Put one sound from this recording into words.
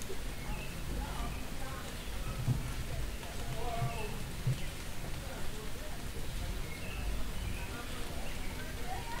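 Adult men and women chat in the distance outdoors on a street.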